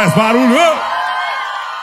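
A man sings a held note through a microphone.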